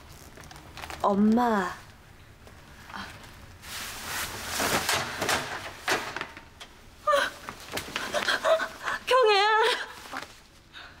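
A woman speaks with emotion close by.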